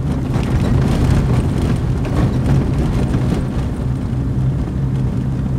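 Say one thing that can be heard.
Tyres rumble on a rough road surface.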